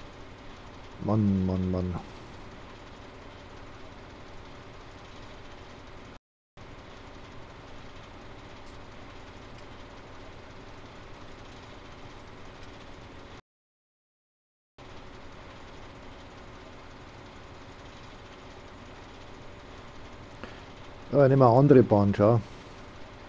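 A harvester's engine hums steadily.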